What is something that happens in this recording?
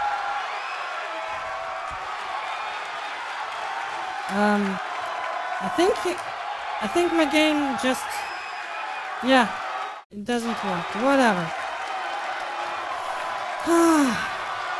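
A large crowd cheers and murmurs steadily in a big echoing arena.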